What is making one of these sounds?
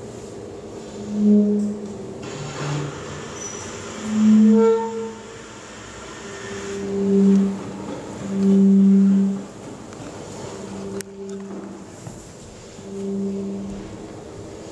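Saxophones play low, sustained notes in short bursts with pauses between.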